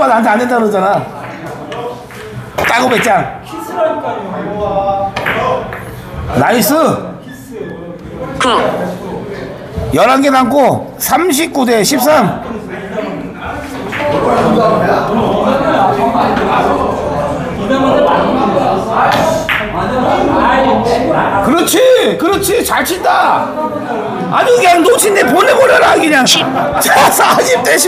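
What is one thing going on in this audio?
Billiard balls click sharply against each other and the cushions.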